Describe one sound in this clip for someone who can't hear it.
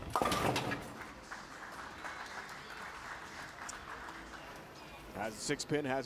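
A small crowd claps.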